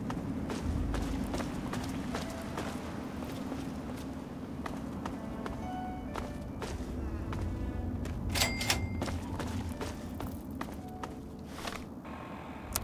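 Footsteps crunch on rubble and gravel.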